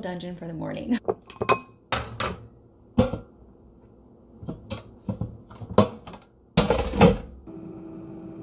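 Frozen waffles knock and clatter against a glass bowl.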